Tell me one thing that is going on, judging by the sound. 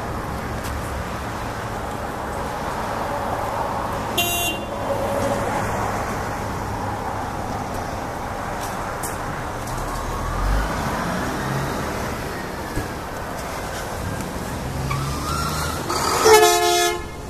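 Traffic rumbles steadily past on a nearby road.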